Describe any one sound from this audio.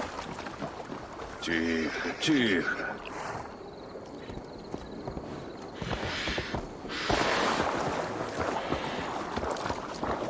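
A horse gallops with heavy hoofbeats.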